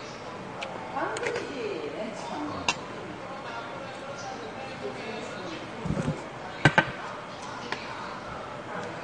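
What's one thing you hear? A spoon and chopsticks clink against dishes.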